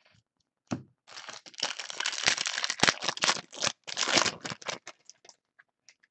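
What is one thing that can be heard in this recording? A foil wrapper crinkles and tears as it is ripped open.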